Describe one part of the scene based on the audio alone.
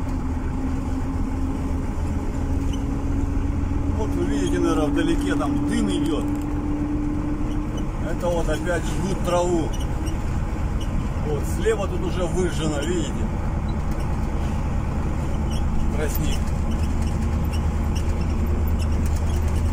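A vehicle's engine hums steadily from inside the cab.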